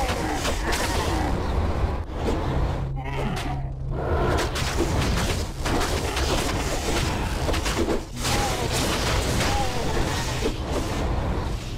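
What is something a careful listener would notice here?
Weapons clash and strike monsters repeatedly.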